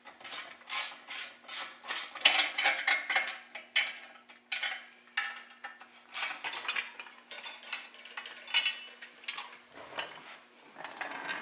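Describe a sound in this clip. Metal chains clink and rattle.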